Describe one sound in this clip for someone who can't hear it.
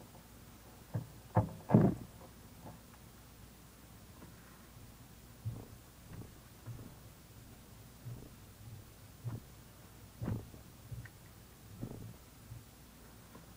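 Fingers bump and rub close to a microphone.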